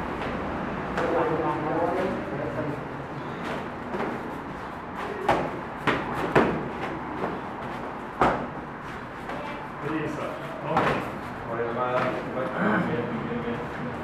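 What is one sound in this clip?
A man speaks calmly and instructs nearby.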